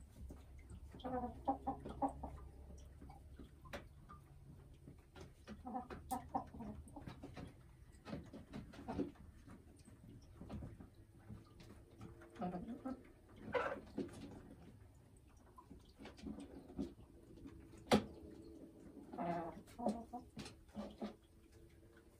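A hen clucks and croons softly in short bursts, close by.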